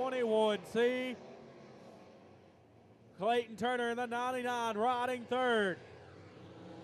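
Race car engines roar and rev loudly.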